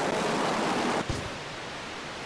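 A sharp thud sounds as rocket boosters break away.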